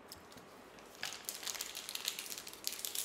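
A plastic wrapper crinkles and tears close by.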